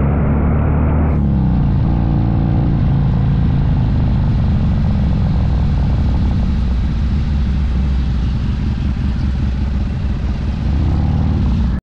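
A motorcycle engine rumbles loudly close by as it rides along.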